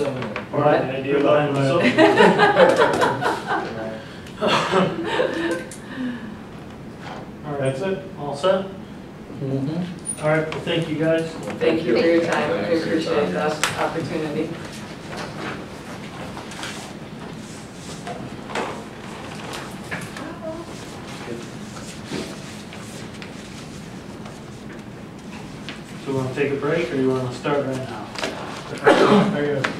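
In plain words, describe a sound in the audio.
A man speaks calmly across a room.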